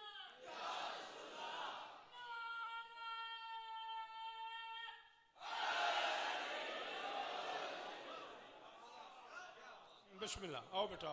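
A large crowd of men chants loudly together in an echoing hall.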